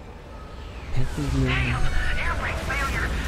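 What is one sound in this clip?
A rocket engine roars.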